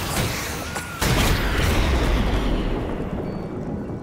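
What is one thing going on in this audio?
A deep rumble of crumbling rock follows and slowly fades.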